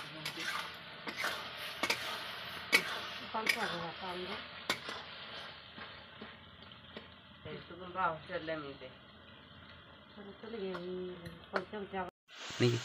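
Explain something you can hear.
A metal spatula scrapes and clinks against a cooking pan.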